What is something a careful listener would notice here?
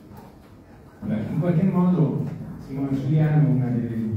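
A woman speaks into a microphone, heard through loudspeakers in a hall.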